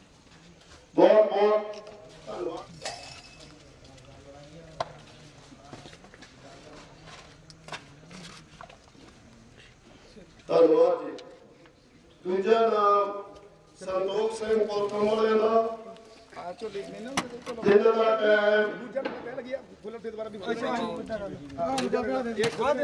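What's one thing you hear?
A man speaks loudly into a microphone over a loudspeaker, in bursts, outdoors.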